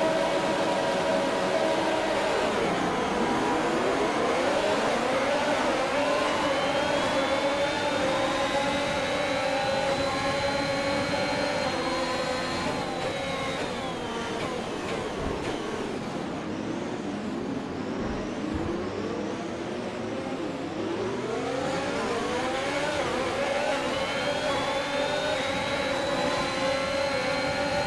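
A racing car engine roars close by, rising in pitch as it climbs through the gears and dropping as it slows.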